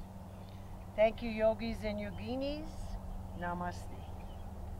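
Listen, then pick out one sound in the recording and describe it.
A woman speaks softly nearby.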